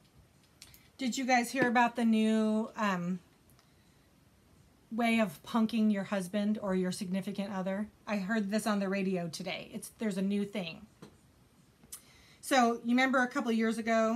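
A woman talks close to a microphone with animation.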